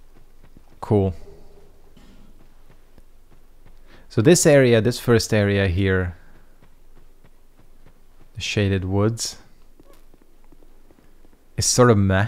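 A young man talks animatedly into a close microphone, in short bursts.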